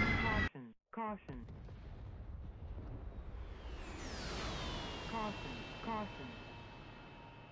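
A rocket motor hisses as a missile streaks away.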